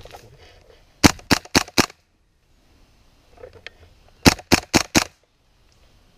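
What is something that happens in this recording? An airsoft gun fires several quick shots in bursts.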